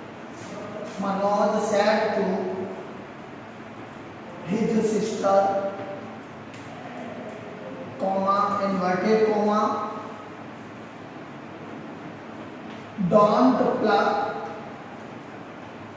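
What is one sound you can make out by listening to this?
A man speaks slowly and clearly in short phrases, close by.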